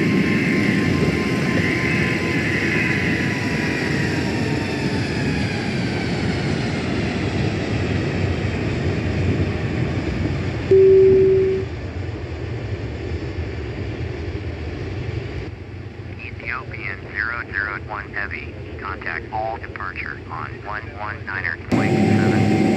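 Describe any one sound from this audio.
A jet airliner's engines roar loudly as it climbs away and slowly fades.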